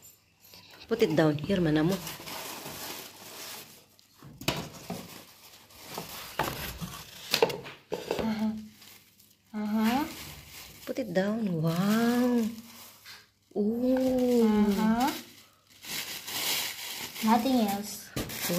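Paper and cardboard rustle and crinkle as a package is unwrapped.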